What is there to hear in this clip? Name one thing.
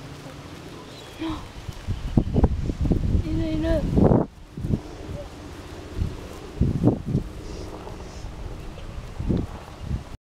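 A toddler's small footsteps patter softly on grass.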